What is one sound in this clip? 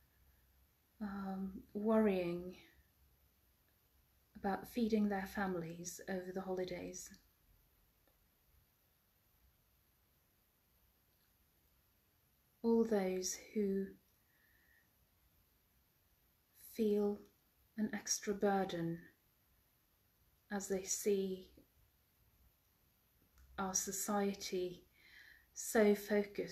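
A woman speaks slowly and calmly into a nearby microphone, pausing between phrases.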